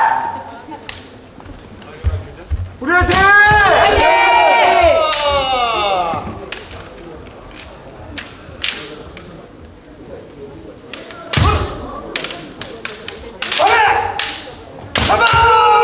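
Bamboo swords clack sharply against each other and against armour.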